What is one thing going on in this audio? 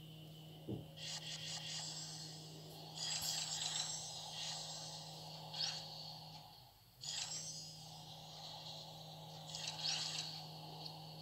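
Soft chimes and clicks sound from a game's menu.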